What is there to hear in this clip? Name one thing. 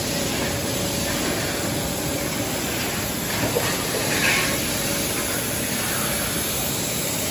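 Industrial machinery rumbles and hisses steadily in a large echoing hall.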